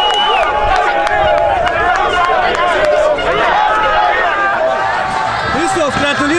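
A crowd of spectators cheers and chants outdoors.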